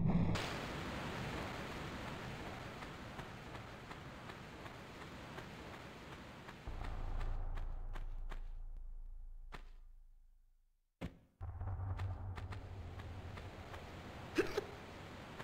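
Footsteps patter on stone.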